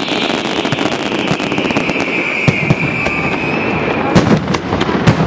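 Fireworks crackle and pop rapidly.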